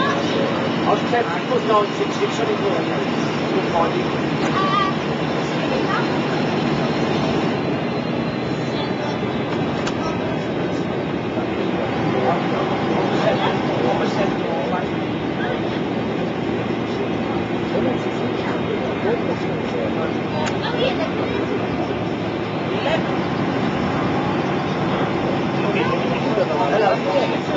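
A vehicle rumbles steadily as it travels along.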